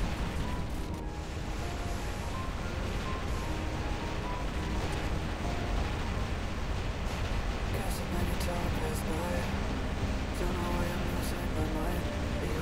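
Heavy gunfire and explosions rumble and crack continuously in a game battle.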